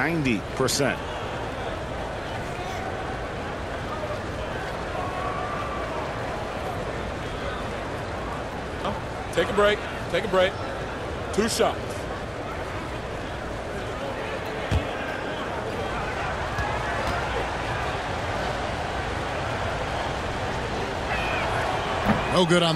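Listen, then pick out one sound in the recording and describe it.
A large crowd murmurs steadily in a big echoing arena.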